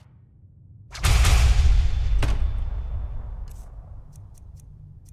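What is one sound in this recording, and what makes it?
A deep magical whoosh swells and slowly fades.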